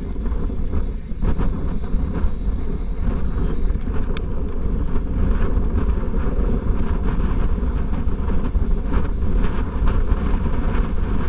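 Bicycle tyres hum steadily on smooth pavement.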